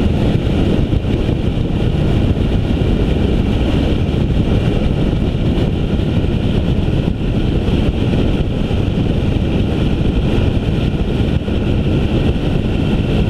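Wind buffets loudly and steadily against the recording microphone.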